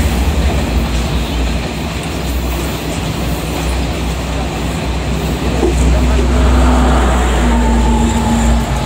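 A passenger train rumbles past close by a platform.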